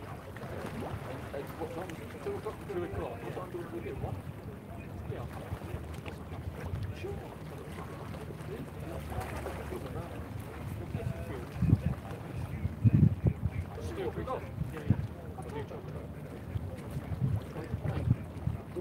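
Wind gusts and buffets outdoors beside open water.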